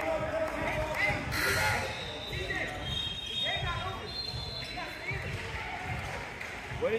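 Young people talk and call out in the echoing hall.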